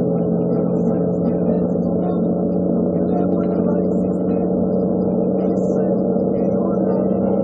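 A truck engine hums steadily through loudspeakers.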